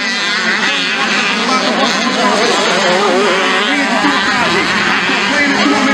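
Motorcycle engines rev and whine as dirt bikes race by.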